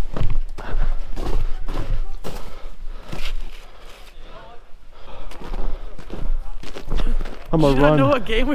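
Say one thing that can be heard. Boots crunch on packed snow.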